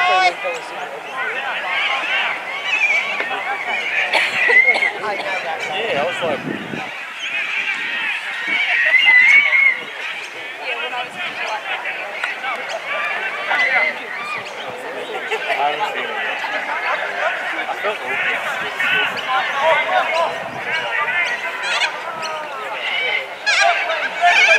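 Young women shout to one another across an open field.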